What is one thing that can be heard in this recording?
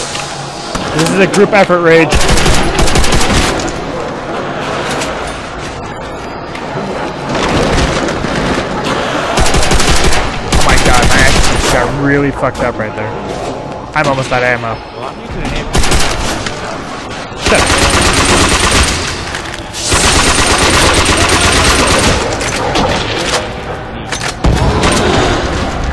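Automatic gunfire bursts rapidly and loudly.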